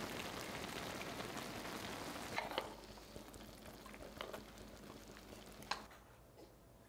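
Food sizzles and bubbles in a hot pan.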